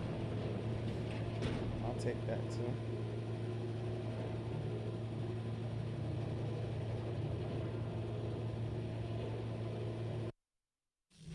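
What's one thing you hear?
A cage lift hums and rattles steadily as it moves.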